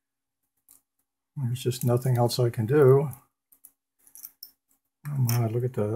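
Plastic parts click as they are pulled apart.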